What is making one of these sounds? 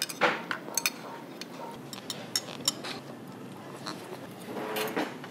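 Spoons and chopsticks clink against bowls.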